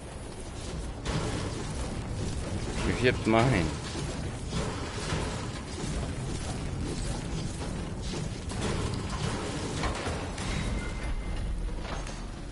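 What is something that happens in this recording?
A pickaxe strikes metal again and again.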